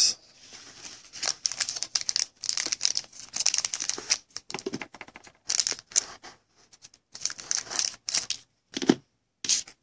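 A foil wrapper crinkles and rustles as it is torn open.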